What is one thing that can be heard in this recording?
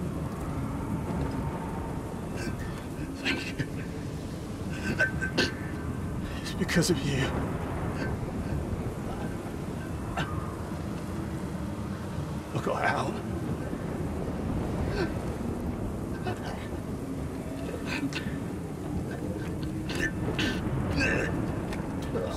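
Wind roars steadily outdoors.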